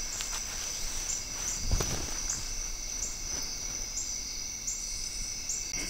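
Hammock fabric rustles as it is handled.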